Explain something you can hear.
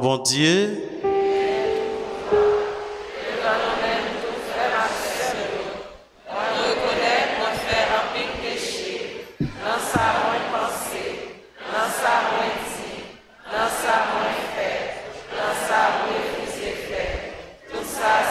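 A young man reads aloud calmly into a microphone, heard through loudspeakers.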